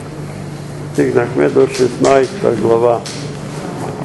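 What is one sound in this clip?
An elderly man reads aloud in a calm voice in an echoing room.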